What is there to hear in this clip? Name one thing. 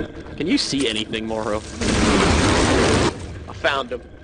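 A magic spell crackles and fizzes in a sparkling burst.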